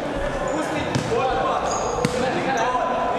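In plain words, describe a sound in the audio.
A ball is kicked with a sharp thud in an echoing hall.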